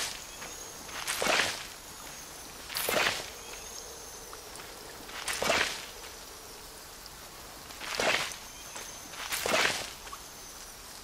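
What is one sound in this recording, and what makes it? A magical whoosh with a sparkling chime sounds each time a seed is planted.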